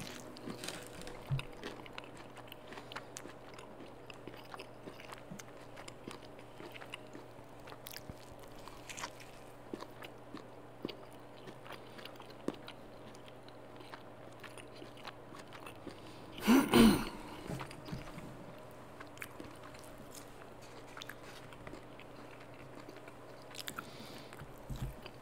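A man chews and munches on crunchy food close to a microphone.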